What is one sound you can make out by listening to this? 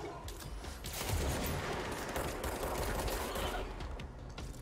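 A creature bursts apart with a wet splatter.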